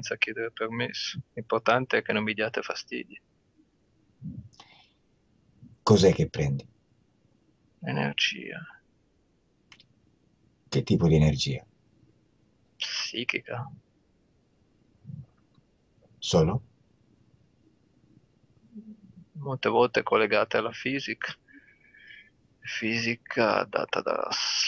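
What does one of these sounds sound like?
A middle-aged man answers calmly over an online call.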